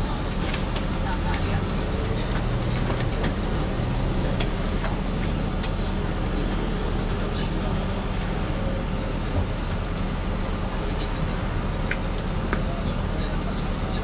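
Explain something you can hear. A bus cabin rattles and clicks as it rolls over the road.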